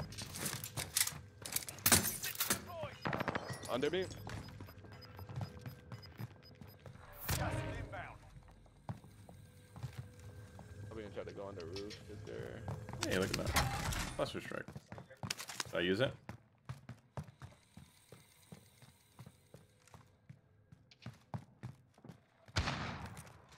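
Footsteps thud on a wooden floor and stairs.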